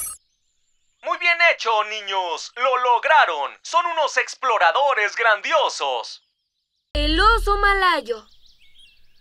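A man speaks warmly and with animation.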